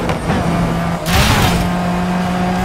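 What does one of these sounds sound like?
A car scrapes and crashes against a barrier with a loud bang.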